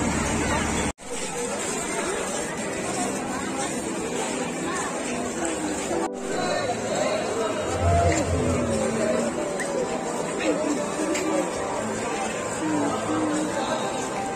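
A crowd chatters outdoors in a busy fair.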